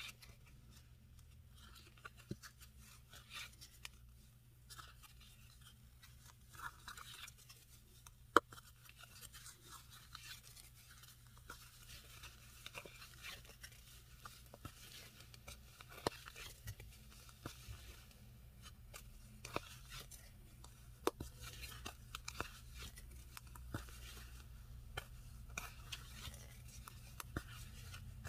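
A crochet hook works yarn through a punched leather base with faint rustles and taps.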